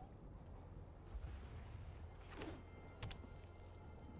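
A card game plays a soft whooshing chime as a card is played.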